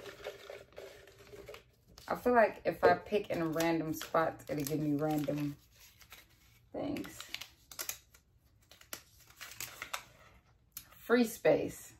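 Plastic packaging crinkles in hands.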